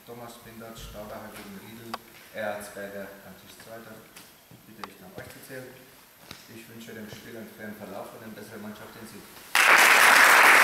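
A man announces over a loudspeaker in a large echoing hall.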